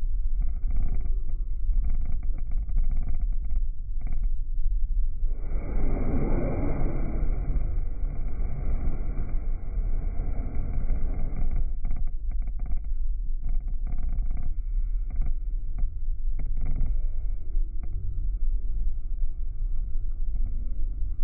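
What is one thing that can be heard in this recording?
Jet engines roar with a steady, deep rumble.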